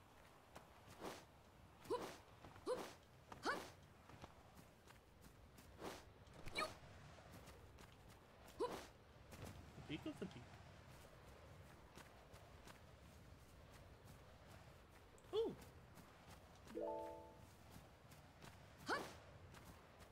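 A game character's jumps and landings make whooshes and soft thuds.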